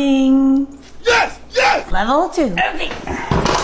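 A dog howls with rising and falling pitch.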